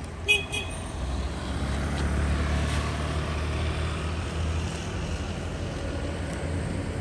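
A motorbike engine rumbles past on the road.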